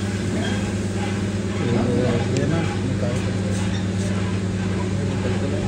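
A vibrating sieve machine hums as its motor runs.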